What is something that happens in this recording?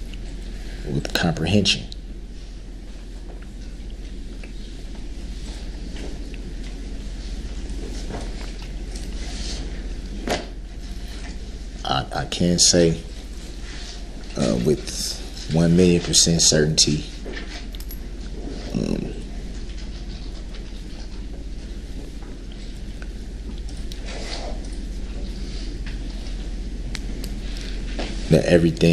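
A man speaks in short bursts with long pauses, heard through a microphone in a quiet room.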